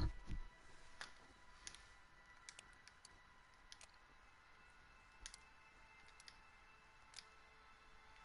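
Short soft interface clicks sound now and then as menu options change.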